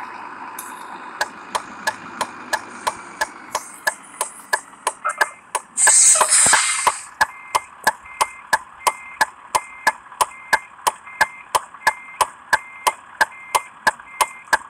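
A turn signal ticks.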